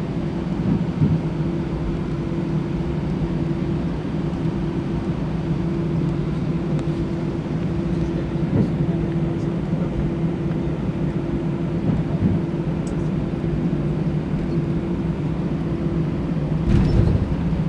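Jet engines hum steadily from inside an aircraft cabin as the plane taxis.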